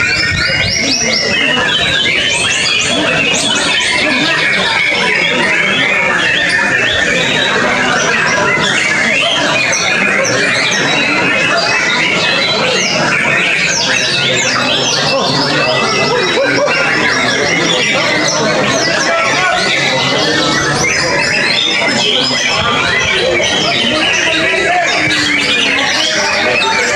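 Many other birds chirp and twitter all around.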